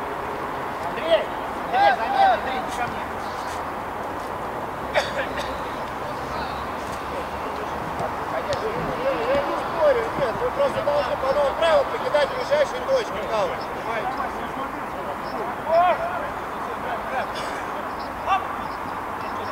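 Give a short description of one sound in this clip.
Men shout outdoors at a distance.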